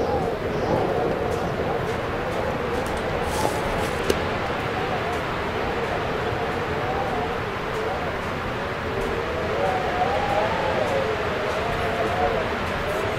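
Wind howls and whistles steadily.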